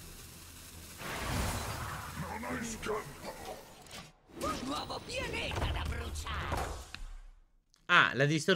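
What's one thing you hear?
Magical game effects whoosh and shimmer.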